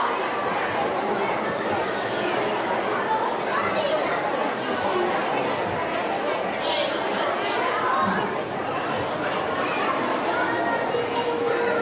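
A young boy laughs nearby.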